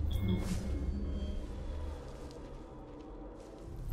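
Leaves rustle as someone pushes through bushes.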